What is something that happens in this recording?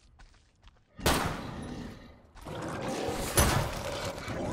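A pistol fires a few sharp shots.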